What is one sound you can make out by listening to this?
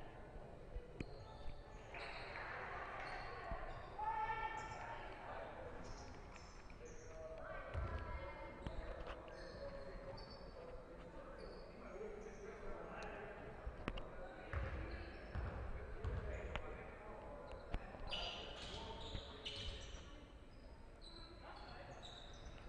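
Sneakers squeak on the court.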